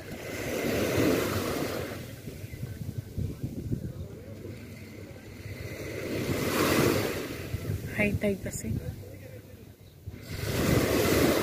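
Small waves wash onto the sand in a steady rhythm.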